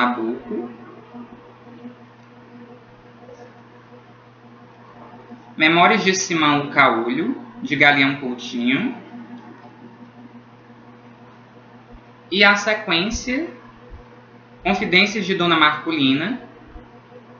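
A young man talks calmly, close to the microphone, in short bursts with pauses.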